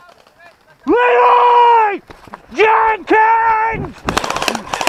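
A young man shouts loudly nearby.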